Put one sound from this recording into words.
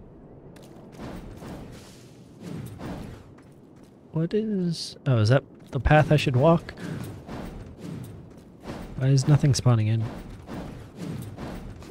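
A sword swishes through the air in quick slashes.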